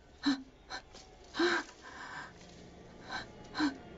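A young woman breathes heavily close by.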